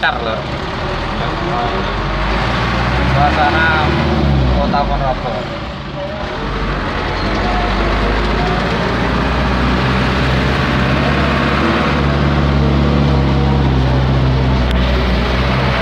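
Motorbikes buzz past in traffic.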